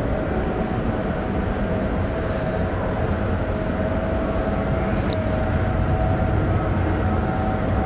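An escalator hums and rumbles steadily as it moves.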